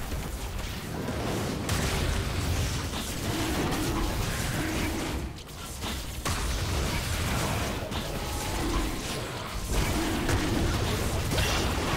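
Magic blasts crackle and boom in a fast fight.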